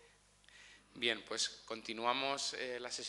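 A man speaks into a microphone over loudspeakers in a hall.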